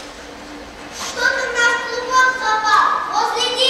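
A young child speaks in a high, clear voice in a large hall.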